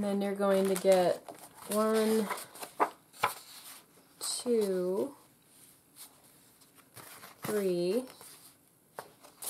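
Paper sheets rustle as they are handled and turned over.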